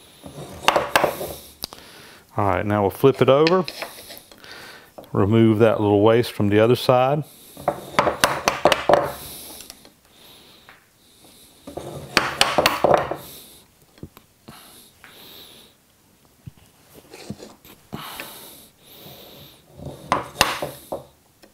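A chisel scrapes and taps against wood.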